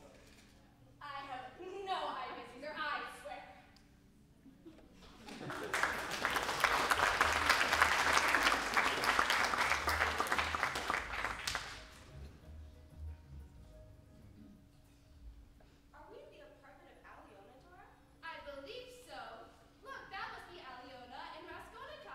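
A young woman speaks loudly in a large echoing hall.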